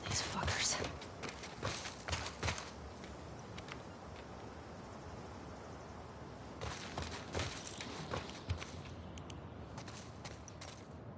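Footsteps thud on a hard walkway.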